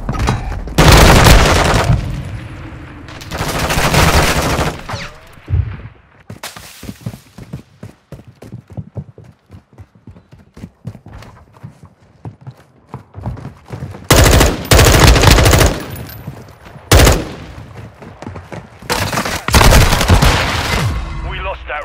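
Rifles fire in loud, rapid bursts.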